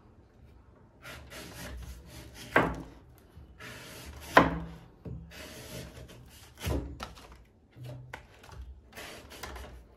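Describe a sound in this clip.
A knife slices and scrapes through a firm fruit's husk.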